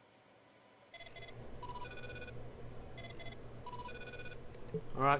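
Short electronic beeps chime as menu items are selected.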